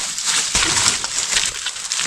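Dry wood cracks and scrapes as a branch is pulled.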